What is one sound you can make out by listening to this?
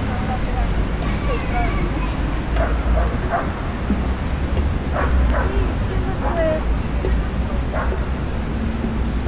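People chatter faintly at a distance.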